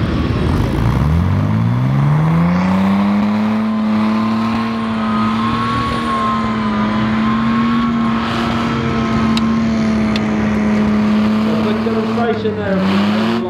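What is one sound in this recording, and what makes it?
An engine revs up, rising in pitch, then holds a steady drone.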